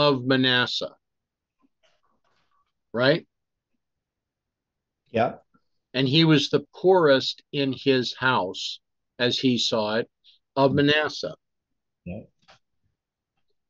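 An older man speaks calmly and close to a microphone, reading out in short phrases with pauses.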